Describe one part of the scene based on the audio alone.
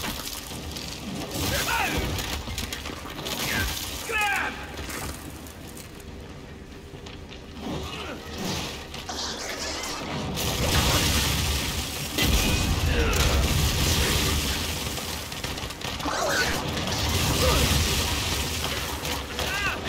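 Monsters screech with high, wavering cries.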